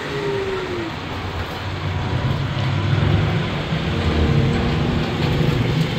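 Cars drive past on an asphalt road.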